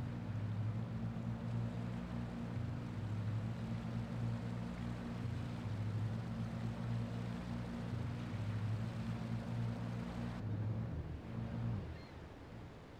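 A boat engine drones steadily, then stops.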